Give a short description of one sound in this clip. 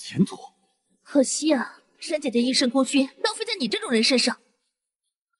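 A young woman speaks mockingly.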